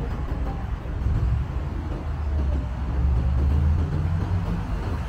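A car engine hums as the car rolls slowly past on the street.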